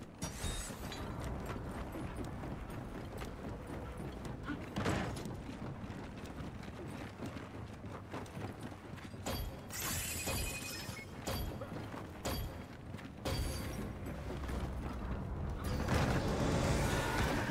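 Heavy boots thud on metal and stone as a soldier runs.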